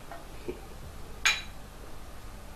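A glass clinks.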